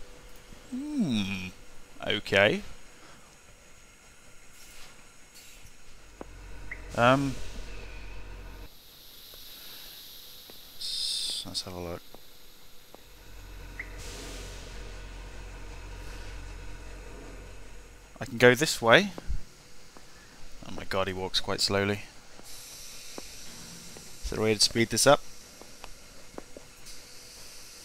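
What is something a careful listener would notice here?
A steam locomotive hisses softly while idling.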